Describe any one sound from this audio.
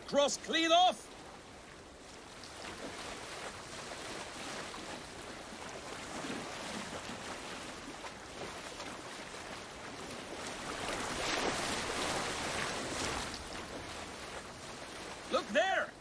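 Water washes softly against a wooden boat's hull.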